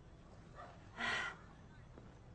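A woman sniffs sharply.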